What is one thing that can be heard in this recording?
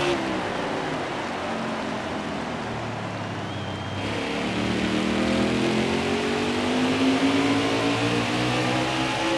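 A race car engine roars steadily and rises in pitch as it speeds up.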